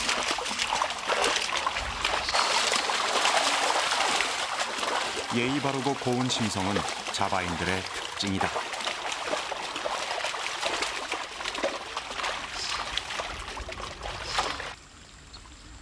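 Buffalo hooves and a plough squelch through wet mud.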